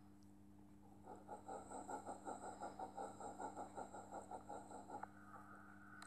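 A steam engine chuffs rhythmically as it pulls away.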